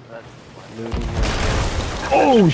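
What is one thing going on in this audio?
A cannonball explodes through a wooden wall with a loud blast.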